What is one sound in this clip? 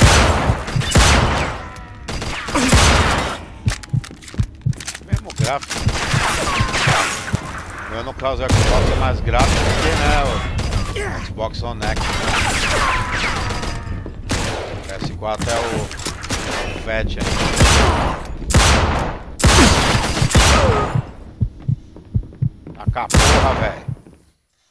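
Pistol shots crack and echo in a large hall.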